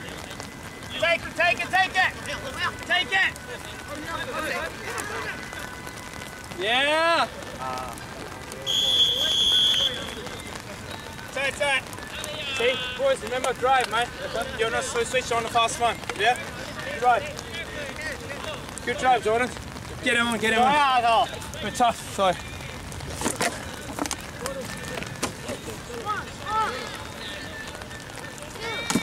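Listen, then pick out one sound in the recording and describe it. Young women shout and call out to each other across an open field outdoors.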